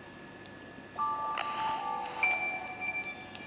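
A game's startup chime plays from a small speaker.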